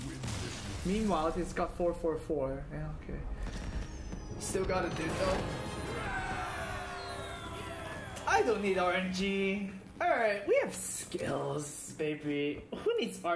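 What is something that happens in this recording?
A young man talks with excitement close to a microphone.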